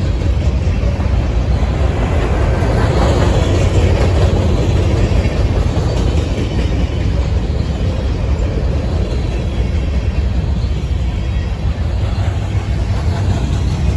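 A freight train rolls past, its steel wheels rumbling and clattering on the rails.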